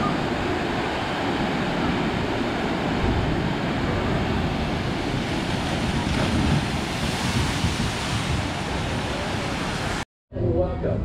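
Water rushes and splashes loudly down a flume.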